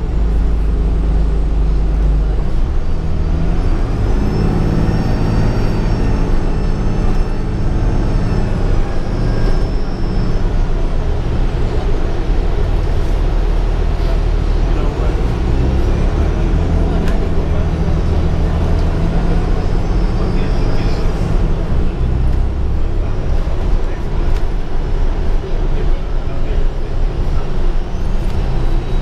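The bus body rattles and creaks as it rolls over the road.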